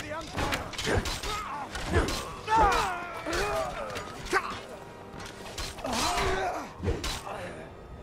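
An axe strikes with heavy, thudding blows.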